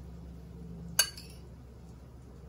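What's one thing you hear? A metal spoon clinks sharply against a bowl.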